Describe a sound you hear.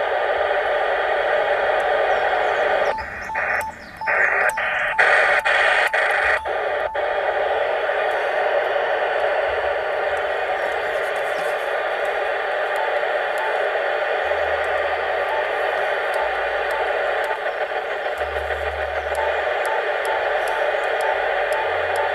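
Static hisses steadily from a radio's speaker.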